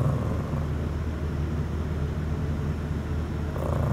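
A small dog sniffs at a hand up close.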